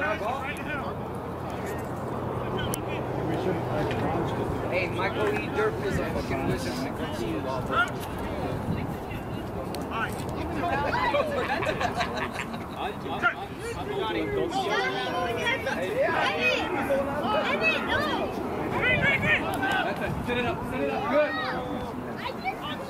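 Men shout and call out to each other on an open field.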